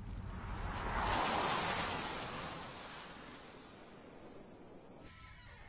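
A car passes by outdoors and fades away.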